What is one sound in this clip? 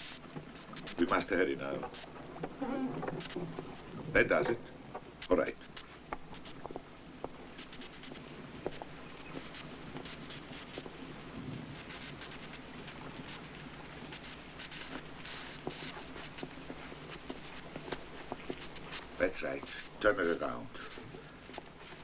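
A man speaks in short bursts in an echoing room.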